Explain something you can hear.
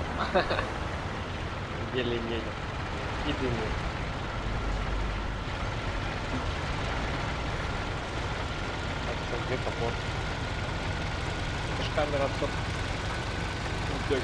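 An old car engine hums steadily.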